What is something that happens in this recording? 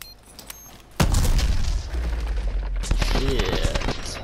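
A loud blast booms and echoes as a wall bursts apart.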